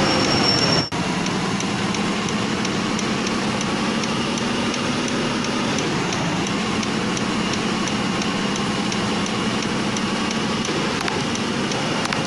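A truck's turn signal ticks at a steady pace.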